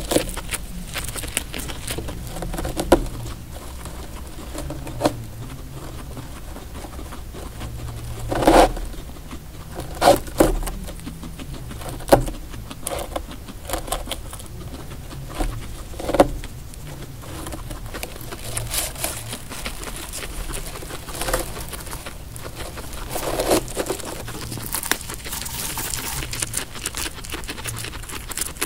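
A guinea pig munches and crunches dry hay up close.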